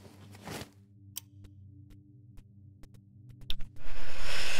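Game interface clicks sound softly.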